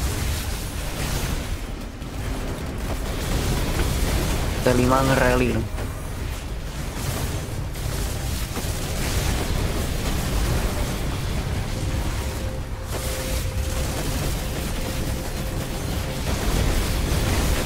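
Game battle effects of clashing and explosions ring out constantly.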